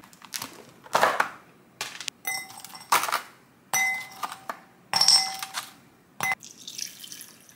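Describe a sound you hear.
Rice cakes clink into a glass bowl.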